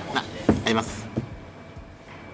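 A young man talks and laughs with excitement close by.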